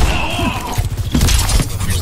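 A weapon fires a beam and a blast bursts close by.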